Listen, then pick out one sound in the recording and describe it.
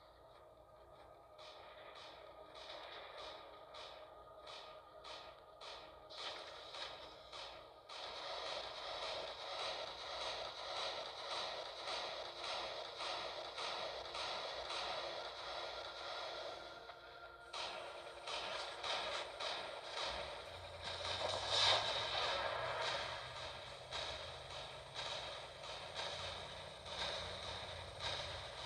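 Heavy metal footsteps stomp.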